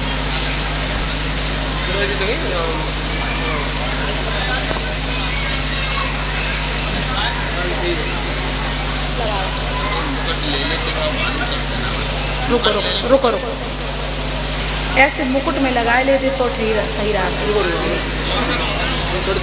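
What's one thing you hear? A woman speaks into a microphone, heard through loudspeakers.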